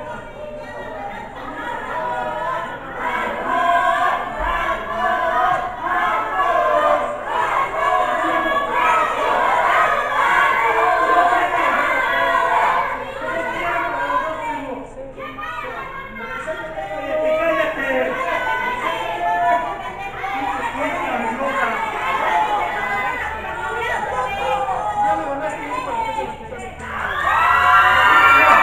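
A crowd of spectators chatters and shouts loudly nearby, echoing in a hall.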